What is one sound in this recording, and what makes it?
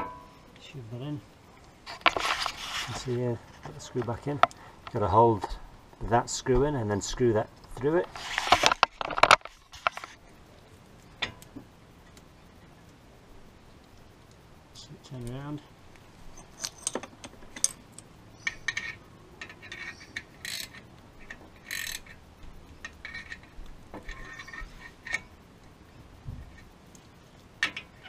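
Metal tools clink and knock against a brake caliper.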